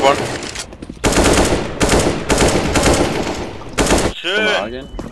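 A rifle fires in bursts.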